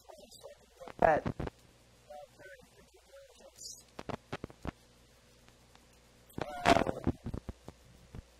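Paper pages rustle and flip in a binder.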